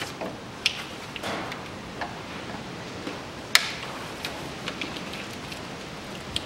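Metal parts clink and knock as hands work on an engine.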